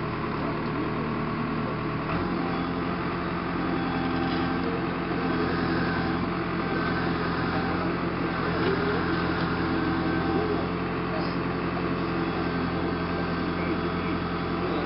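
A backhoe's diesel engine rumbles steadily.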